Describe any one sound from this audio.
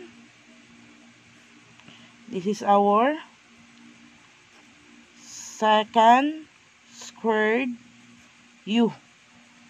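A marker squeaks softly on paper.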